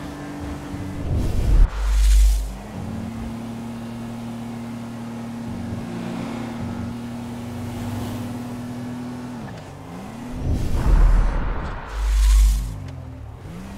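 Loud thumps boom as the car bumps over the road.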